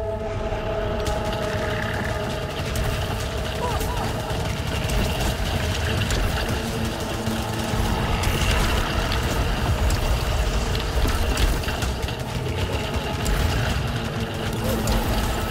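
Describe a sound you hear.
Rapid gunfire rattles and crackles in a game.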